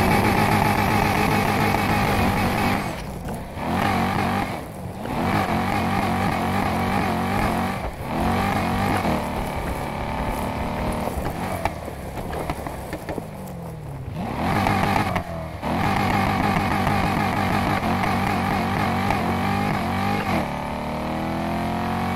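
A car engine roars and revs up and down as the car speeds along.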